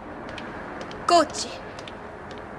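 A young woman calls out briefly.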